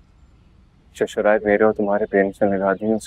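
A young man speaks quietly and close.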